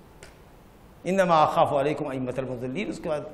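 A middle-aged man speaks calmly and clearly into a clip-on microphone.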